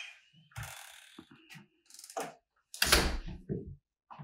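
A door swings shut with a thud.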